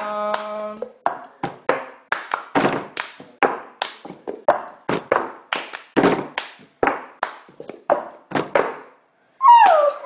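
Plastic cups tap and slap on a table in a rhythm.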